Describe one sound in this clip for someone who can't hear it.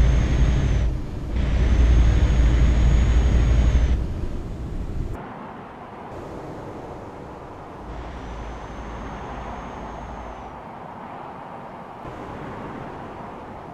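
Tyres roll on a highway.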